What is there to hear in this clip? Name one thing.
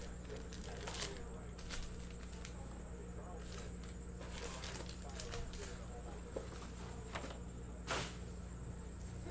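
Card packs click as they are set down.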